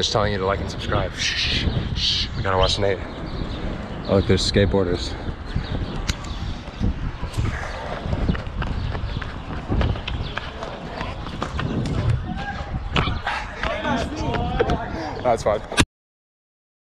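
A man talks with animation close to a microphone, outdoors in wind.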